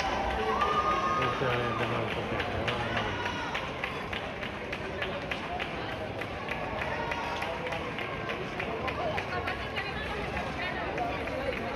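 A crowd of onlookers cheers and shouts, heard from above outdoors.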